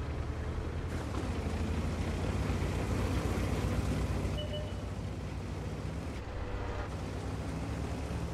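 A tank engine rumbles steadily as the tank drives across grass.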